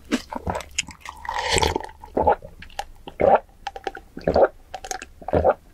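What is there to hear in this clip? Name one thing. A young woman gulps down a drink close to a microphone with loud swallowing sounds.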